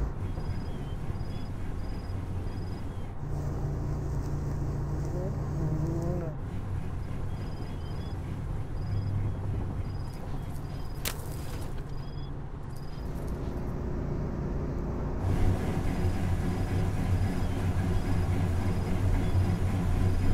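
A truck engine idles nearby.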